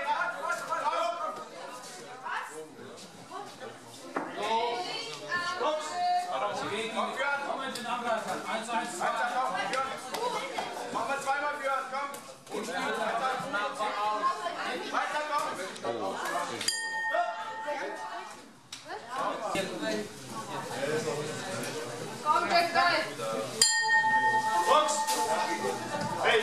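Gloves thud as boxers spar.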